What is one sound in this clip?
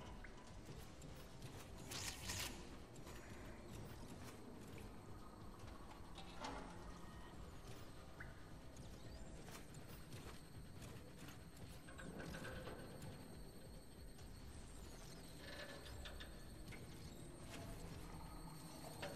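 Heavy metal footsteps clank and thud steadily.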